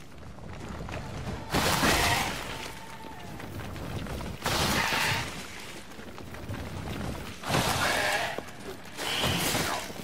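Rock bursts apart with a loud crash.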